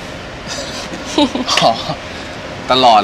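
A young woman laughs softly nearby.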